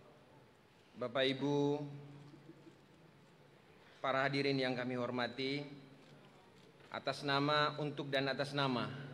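A man reads out loudly through a microphone in a large echoing hall, pausing between phrases.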